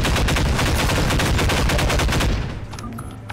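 A gun fires in a rapid, loud burst.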